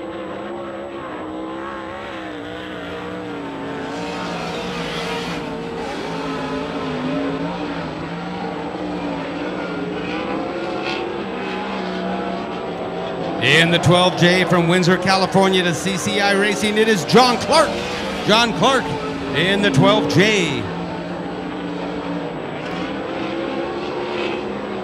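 A race car engine roars steadily.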